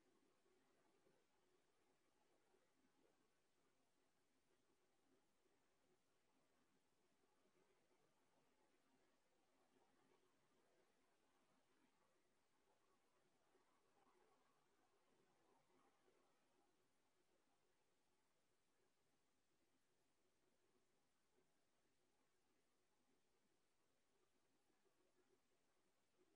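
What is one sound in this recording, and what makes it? A woman speaks calmly and softly through a microphone.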